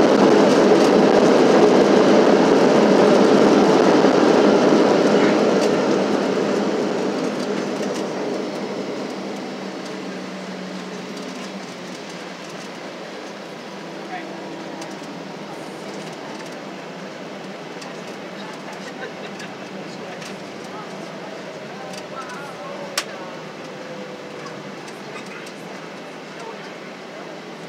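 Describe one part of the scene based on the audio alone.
A jet airliner's engine roars steadily from inside the cabin, then slowly quiets down.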